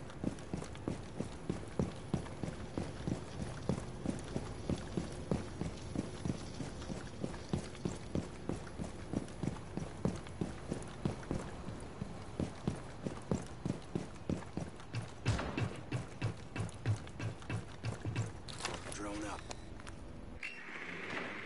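Game footsteps thud quickly and steadily on hard ground.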